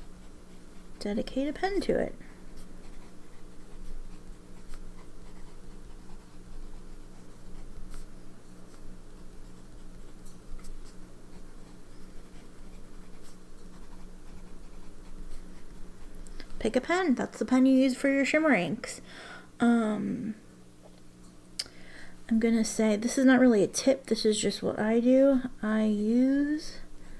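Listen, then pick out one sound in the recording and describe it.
A fountain pen scratches softly on paper.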